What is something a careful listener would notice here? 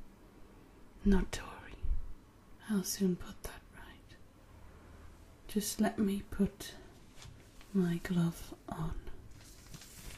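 A young woman speaks softly and close by, in short phrases.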